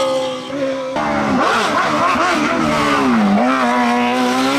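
A racing car engine drops and rises sharply in pitch as the gears shift.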